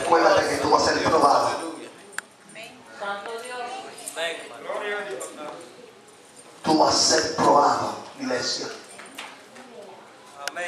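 A man speaks with animation over a loudspeaker in an echoing hall.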